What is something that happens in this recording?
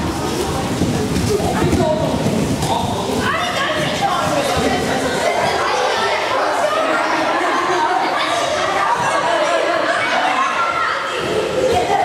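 Bodies thud onto padded mats.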